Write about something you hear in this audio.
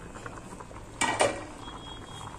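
A metal spoon clinks against a metal pot.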